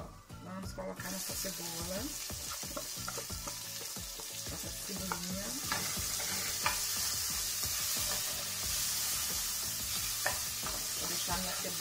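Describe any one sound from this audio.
Food sizzles loudly in hot oil in a pan.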